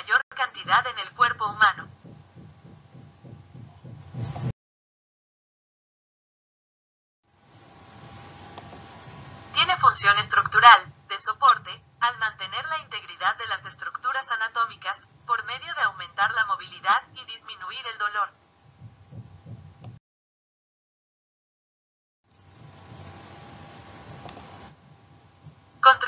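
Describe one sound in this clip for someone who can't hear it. A man speaks calmly through a microphone, as if giving a lecture over an online call.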